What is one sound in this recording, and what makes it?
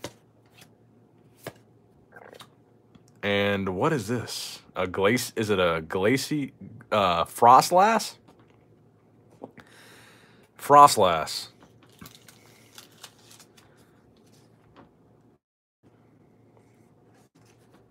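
Trading cards rustle and flick softly as they are handled.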